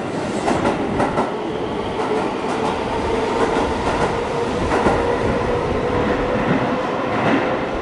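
A train rumbles and clatters along the rails.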